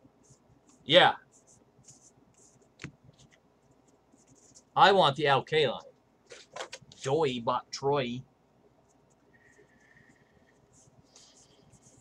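Trading cards are flipped and shuffled by hand.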